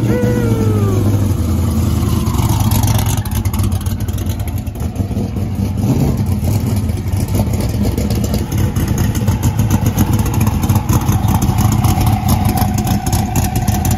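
A race car engine rumbles loudly and roughly at idle.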